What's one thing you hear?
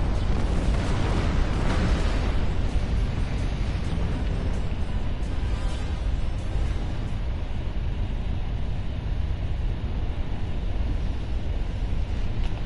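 Weapon blasts crackle and boom around a spaceship.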